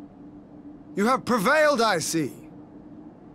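A young man speaks in a raised, strained voice.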